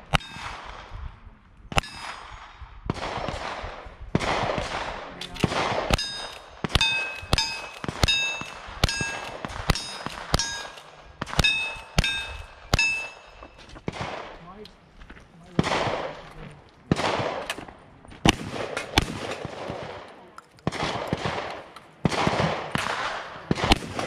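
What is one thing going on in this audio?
Gunshots crack one after another outdoors, each rolling away in a long echo.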